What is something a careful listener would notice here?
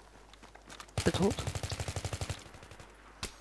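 A rifle fires a rapid burst.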